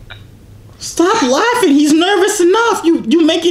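A young man talks with animation.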